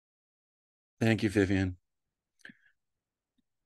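A middle-aged man speaks through an online call.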